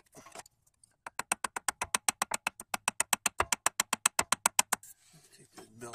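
A ratchet wrench clicks rapidly.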